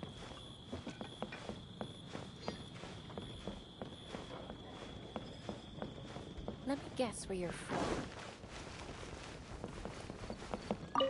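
Footsteps patter quickly on wooden floorboards.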